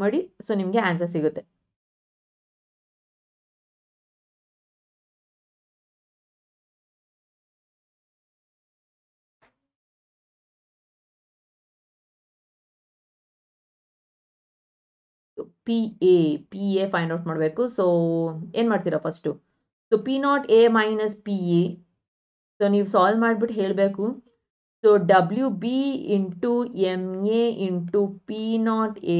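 A woman explains calmly into a close microphone.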